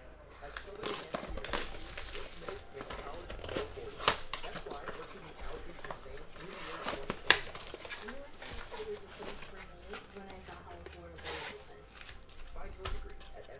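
A cardboard box flap tears and rustles open.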